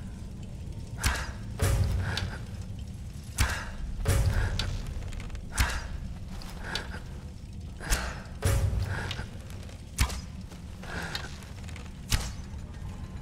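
A bowstring twangs sharply as arrows are loosed, again and again.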